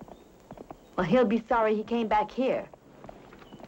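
A woman answers in a low, gentle voice up close.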